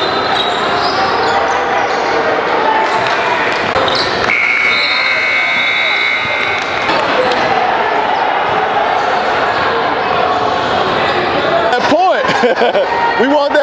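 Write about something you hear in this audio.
A crowd of spectators chatters throughout.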